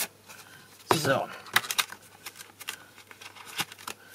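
A paper package rustles as it is handled.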